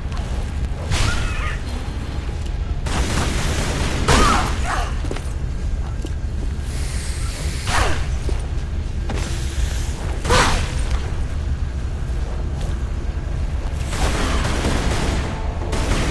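Pistol shots ring out sharply in an echoing hall.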